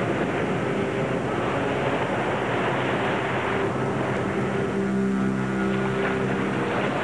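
Waves crash and churn on rough open sea.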